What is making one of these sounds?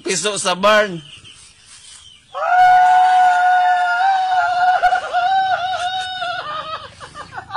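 A woman calls out loudly in long, drawn-out cries.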